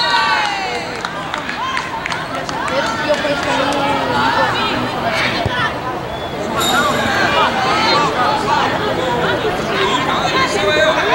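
Young players and spectators shout and call out across an open outdoor field.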